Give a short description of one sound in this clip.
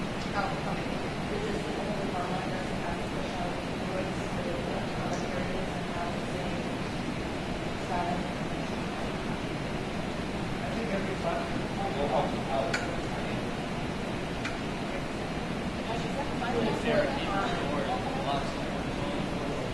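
A man speaks to a crowd in a large echoing hall.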